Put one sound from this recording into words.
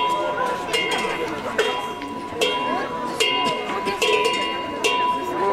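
A group of women sing together outdoors.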